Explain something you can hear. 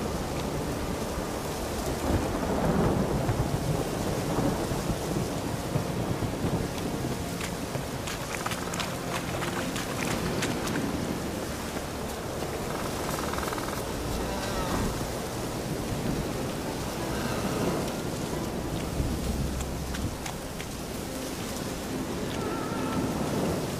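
Wind blows through trees outdoors.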